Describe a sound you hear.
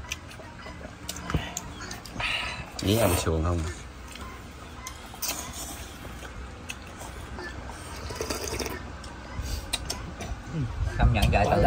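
A man chews and smacks his lips.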